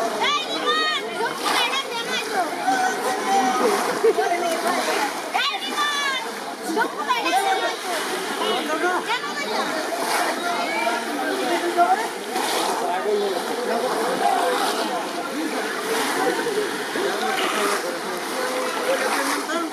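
Several men talk and call out to each other close by.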